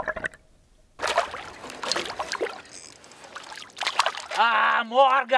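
A fishing net splashes through water.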